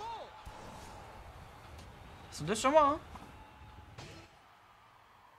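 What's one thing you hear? Video game effects whoosh and blast.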